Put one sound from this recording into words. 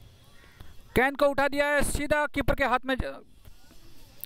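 Young men shout an appeal loudly outdoors.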